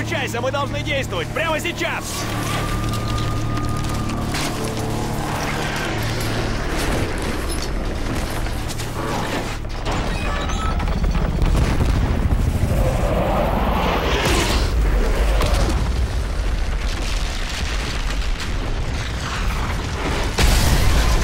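A helicopter engine drones loudly.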